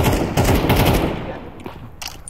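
A rifle fires a rapid burst of shots that ring out.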